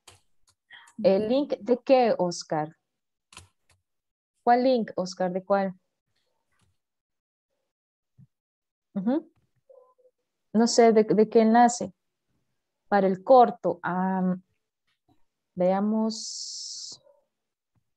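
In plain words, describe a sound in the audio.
A young woman speaks animatedly over an online call.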